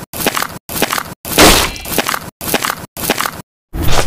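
A sword thuds into the ground.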